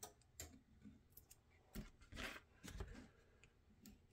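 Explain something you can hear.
A craft knife scrapes and cuts briefly.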